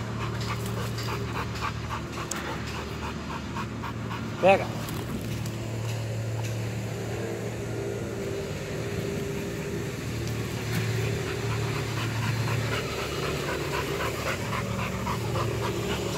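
A dog pants quickly and steadily close by.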